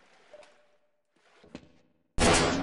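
A gun clicks as it is drawn and readied.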